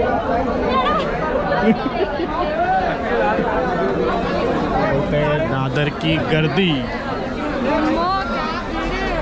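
A crowd of men and women chatter loudly all around, close by.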